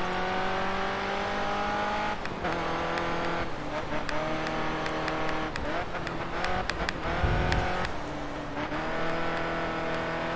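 A racing car engine roars at high revs, its pitch dropping and climbing with each gear change.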